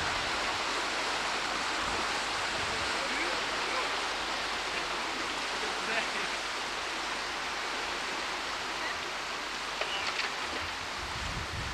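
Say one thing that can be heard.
A river rushes steadily over rapids nearby.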